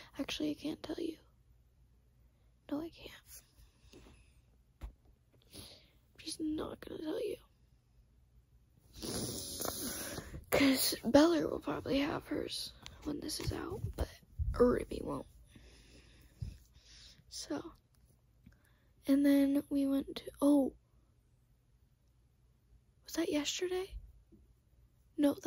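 A young girl whispers softly close to the microphone.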